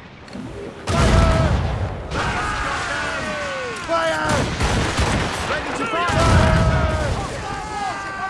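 Cannons fire with heavy booms.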